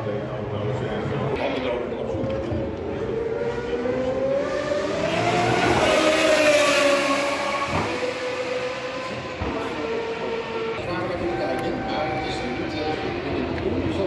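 Engines of distant racing cars whine steadily around the track.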